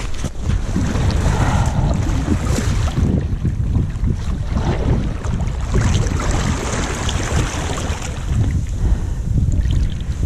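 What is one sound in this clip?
A paddle splashes in the water with each stroke.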